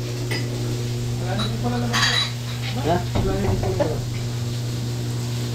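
Metal tongs clink lightly against a plate.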